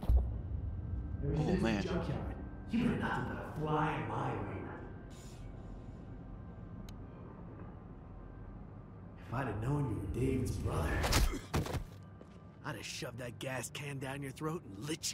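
A man speaks angrily and menacingly, close by.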